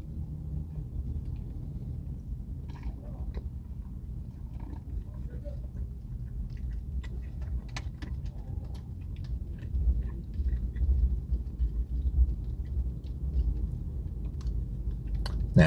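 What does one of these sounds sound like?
A man bites and chews crunchy food.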